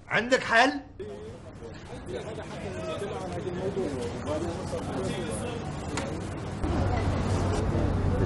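A middle-aged man talks quietly.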